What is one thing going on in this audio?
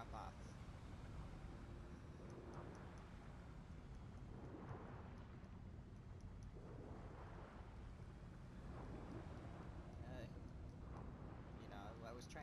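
Water rumbles low and steadily around divers underwater.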